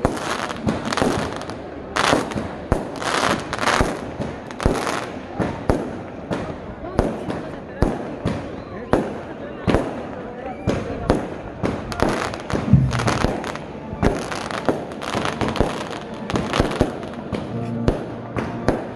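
Fireworks crackle and bang overhead outdoors.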